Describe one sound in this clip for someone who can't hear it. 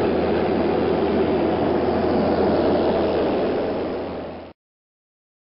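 A small plane's engine drones loudly and steadily, then cuts off abruptly.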